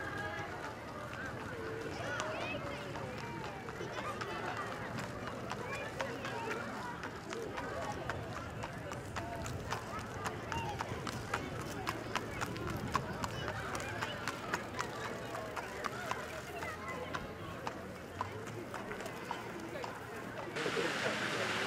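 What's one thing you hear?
A crowd cheers and chatters outdoors.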